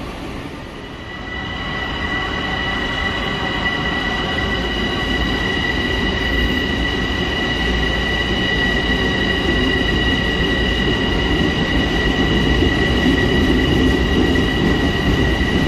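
A standing train hums with a steady high whine.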